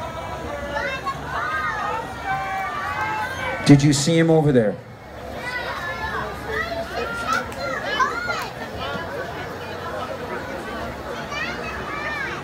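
A man sings loudly through a microphone and loudspeakers outdoors.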